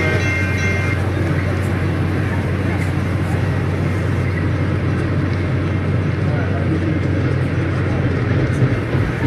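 A train rumbles along the tracks and moves away.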